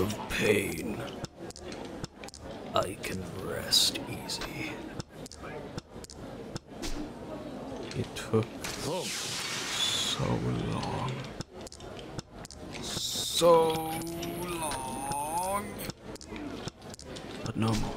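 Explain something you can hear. Game tiles click as they are set down on a table.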